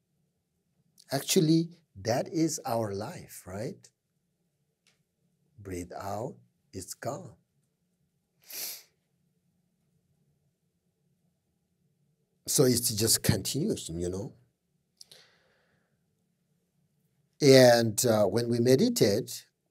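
A middle-aged man speaks calmly and slowly into a close microphone, with long pauses.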